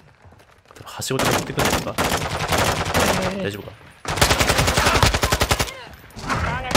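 Rapid bursts of rifle fire crack close by.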